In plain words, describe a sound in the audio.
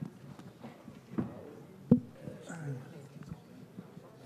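A microphone knocks and thumps as a man gets up from a table.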